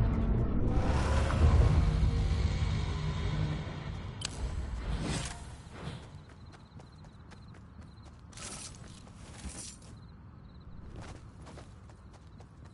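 Footsteps patter quickly across grass.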